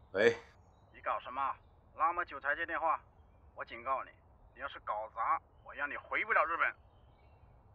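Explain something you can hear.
A young man speaks quietly and tensely into a phone.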